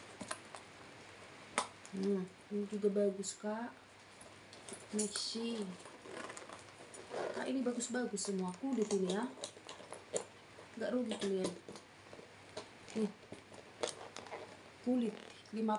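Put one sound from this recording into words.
A handbag's metal buckle clinks and rattles as it is handled.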